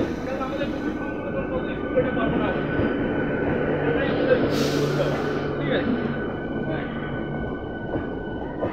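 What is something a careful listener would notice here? An electric local train rolls past below, its wheels rumbling on the rails.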